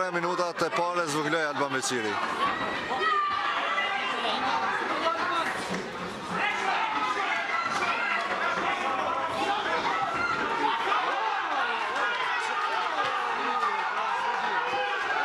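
A crowd of spectators cheers and shouts in a large echoing hall.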